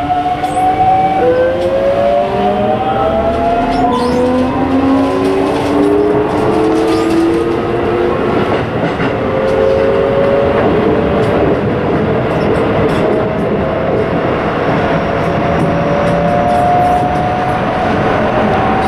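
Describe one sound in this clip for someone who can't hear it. A train's electric motor whines, rising in pitch as it speeds up.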